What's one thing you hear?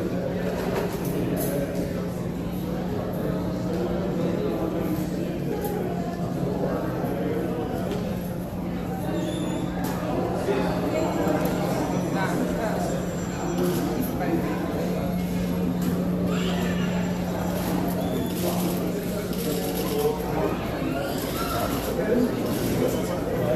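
A crowd of adults murmurs and chatters in an echoing hall.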